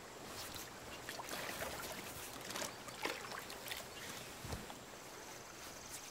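Water splashes as men wade in a river.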